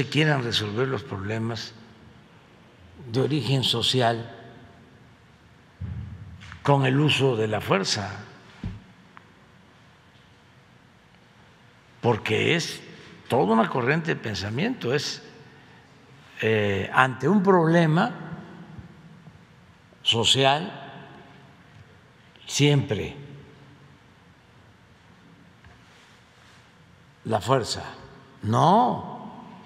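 An elderly man speaks slowly into a microphone in a large room, with long pauses.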